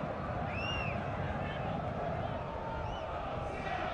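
A large crowd roars and chants in a stadium.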